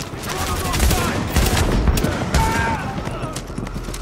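Gunshots crack in rapid bursts close by.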